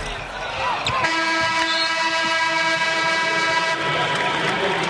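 A loud buzzer sounds steadily and then stops.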